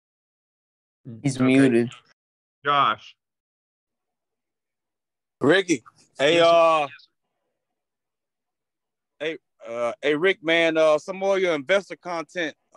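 A man speaks in short bursts over an online call.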